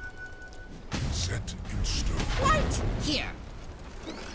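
Magic blasts and clashing weapons burst out in a video game fight.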